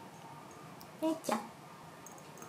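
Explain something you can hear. A cat meows briefly close by.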